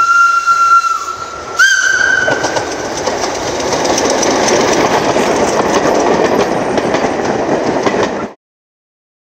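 A train rumbles past along the tracks.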